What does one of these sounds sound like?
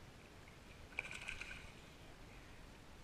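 A landing net splashes through lake water.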